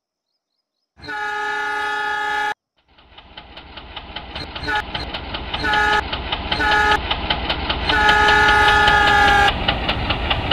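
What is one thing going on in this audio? A train horn blasts loudly several times.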